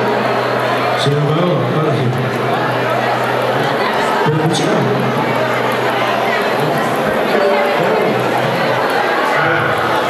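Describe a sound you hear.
A band plays loud live music.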